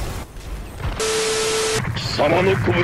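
A steady test tone beeps.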